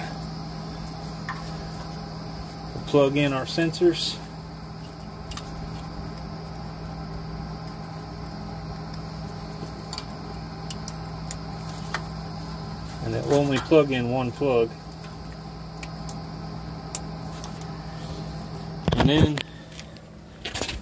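A hand rattles and taps small metal parts.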